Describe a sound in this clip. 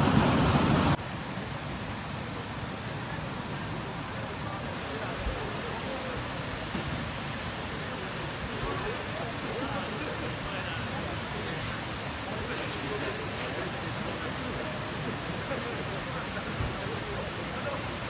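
A stream rushes over rocks nearby.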